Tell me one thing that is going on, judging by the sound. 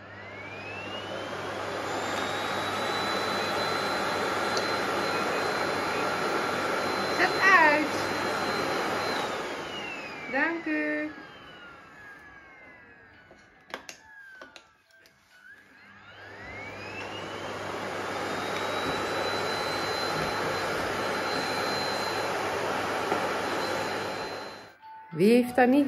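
A vacuum cleaner motor whirs loudly, winding down and then starting up again.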